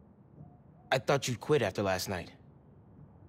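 A second young man asks a question in surprise.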